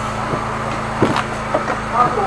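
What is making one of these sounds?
A hand bumps against a hard object with a dull knock.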